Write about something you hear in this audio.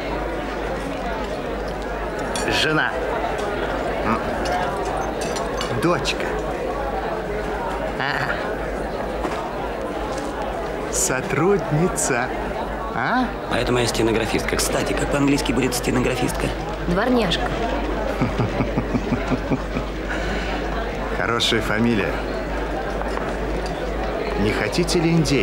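A crowd murmurs steadily in a large room.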